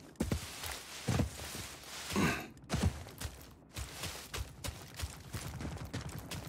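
Leaves rustle as someone pushes through dense plants.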